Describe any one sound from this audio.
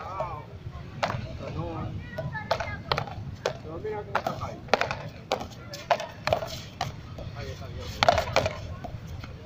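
Paddles strike a ball with sharp cracks.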